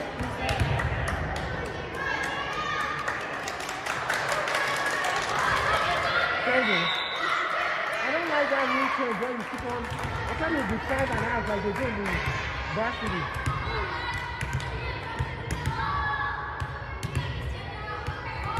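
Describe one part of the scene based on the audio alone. Girls chatter and call out to each other in a large echoing gym.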